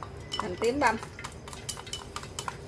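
Chopsticks scrape food from a bowl into a pan.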